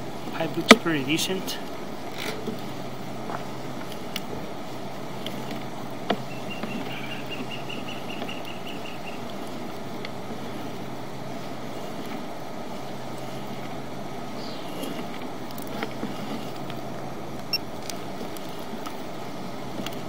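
A probe scrapes and bumps along the inside of a pipe.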